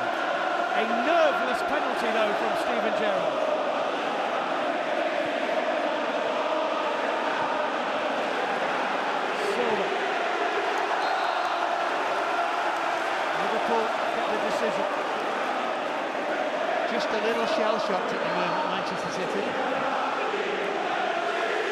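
A large stadium crowd sings and chants loudly.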